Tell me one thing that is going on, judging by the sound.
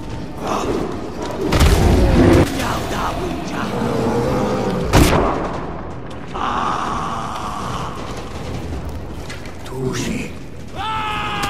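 A large beast growls and roars up close.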